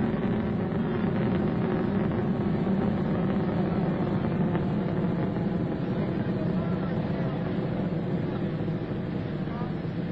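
A rocket engine roars steadily in the distance and slowly fades.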